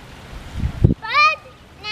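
Young girls call out excitedly nearby.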